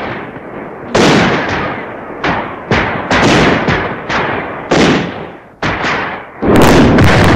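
Mortar rounds fire with sharp booming blasts.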